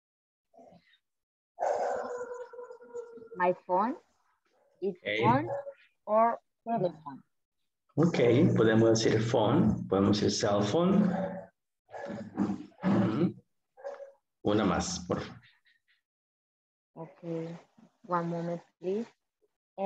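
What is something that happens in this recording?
A man speaks with animation through an online call.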